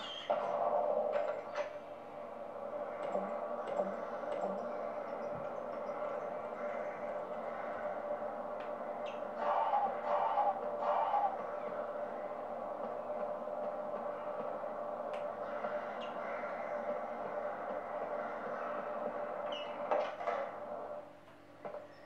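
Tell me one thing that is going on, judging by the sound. Game music plays steadily from a television speaker, then drops away.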